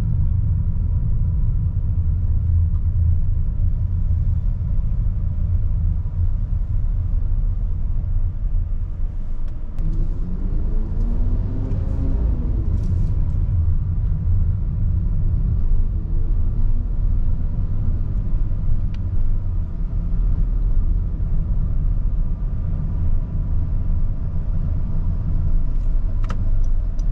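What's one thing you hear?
A car engine hums steadily from inside the cabin while driving.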